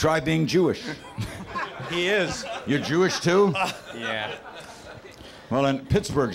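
A younger man laughs near a microphone.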